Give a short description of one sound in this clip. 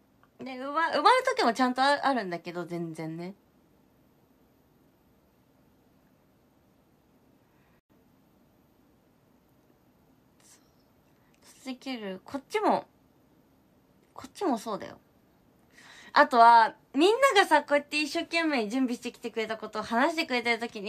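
A young woman talks with animation close to a microphone, with pauses.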